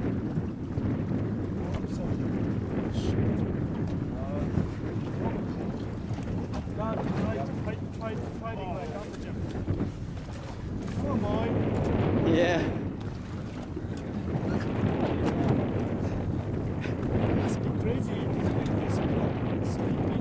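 Wind blows steadily across open water outdoors.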